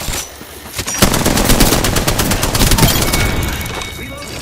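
A rifle fires a rapid burst of loud gunshots.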